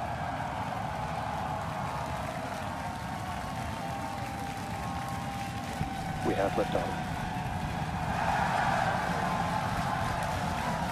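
A rocket engine roars in a deep, steady rumble.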